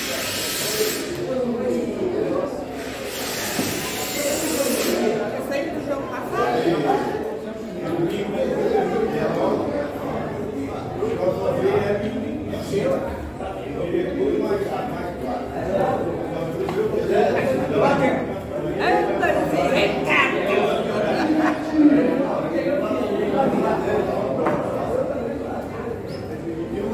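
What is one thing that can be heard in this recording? Several men talk and chat close by.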